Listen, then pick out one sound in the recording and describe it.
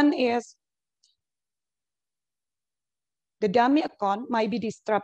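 A woman speaks calmly through an online call, with short pauses.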